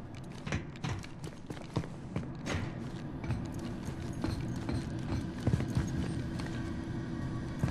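Heavy boots thud on a metal floor with steady footsteps.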